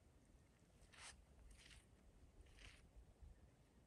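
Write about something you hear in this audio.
Dry grass rustles as a man walks through it.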